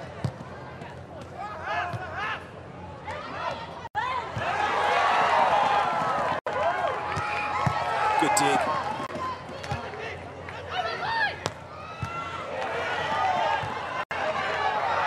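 A large crowd cheers and shouts in a big arena.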